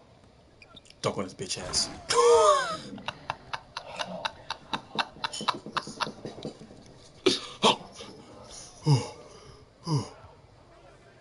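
A young man shouts and laughs excitedly close to a microphone.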